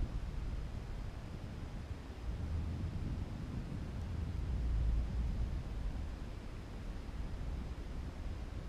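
Wind rumbles and buffets steadily against the microphone.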